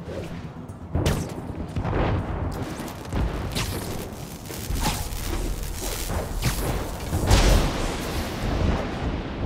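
Air rushes past in loud whooshing gusts.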